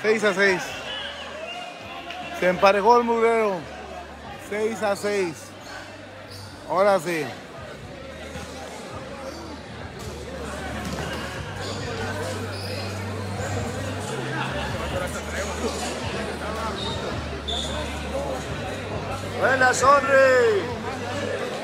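Men shout loudly nearby in a large echoing hall.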